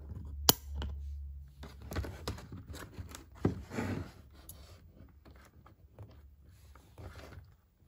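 Stiff plastic packaging crinkles and rustles as it is handled.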